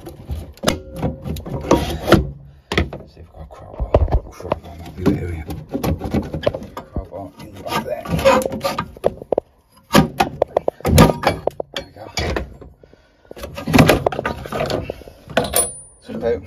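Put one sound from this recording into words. Plastic parts click and knock as a cover is pried loose.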